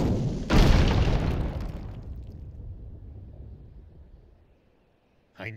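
Boulders crash down with a heavy rumble that slowly fades.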